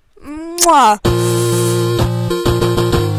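Video game music plays.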